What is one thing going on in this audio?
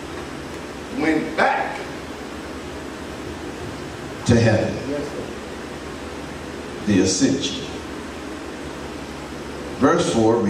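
A man speaks in short bursts through a microphone and loudspeakers in a large echoing hall.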